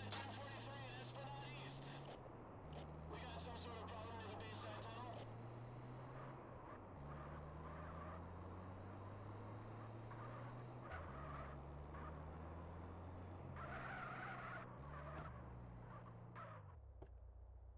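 A van engine hums and revs as it drives.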